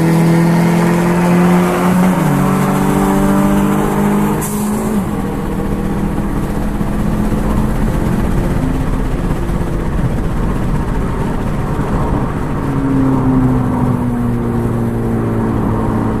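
Road and wind noise rush past steadily.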